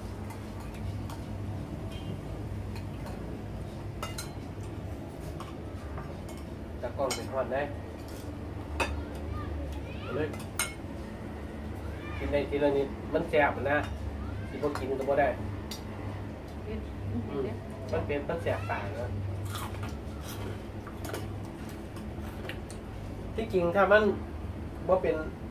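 Spoons and forks clink against plates and bowls.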